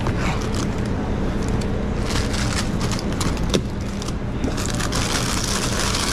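A cardboard box rustles and scrapes as it is packed.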